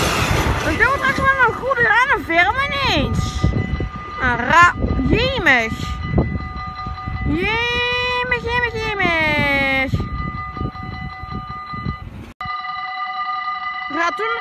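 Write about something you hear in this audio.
A level crossing bell rings steadily.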